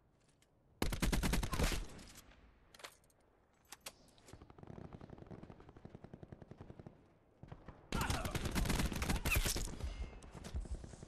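An automatic rifle fires rapid bursts.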